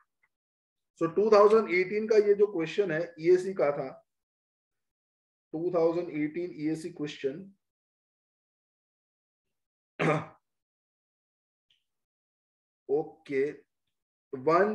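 A young man explains calmly in short bursts through a close microphone.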